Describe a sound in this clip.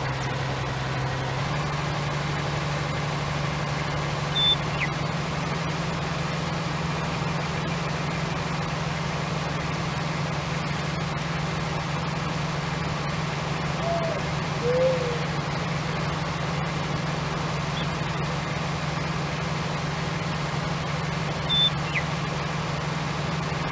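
A heavy harvester engine drones steadily at a low pitch.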